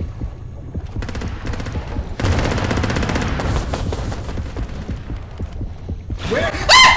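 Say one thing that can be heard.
A rifle fires rapid bursts underwater.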